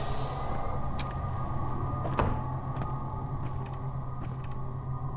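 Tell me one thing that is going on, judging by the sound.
Footsteps creak slowly on wooden floorboards.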